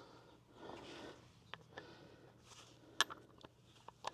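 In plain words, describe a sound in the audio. A hand wrench clicks as wheel nuts are tightened.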